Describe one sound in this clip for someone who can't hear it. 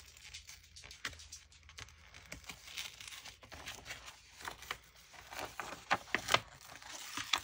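Hands tap and slide on a book.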